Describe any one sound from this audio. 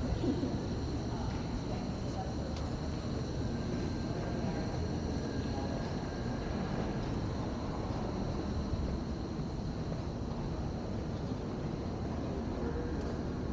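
Wind blows outdoors.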